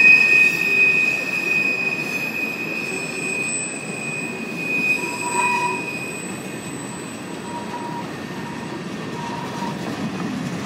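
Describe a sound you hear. A freight train rumbles past on the rails close by.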